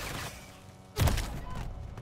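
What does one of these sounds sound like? A rifle fires a loud, booming shot.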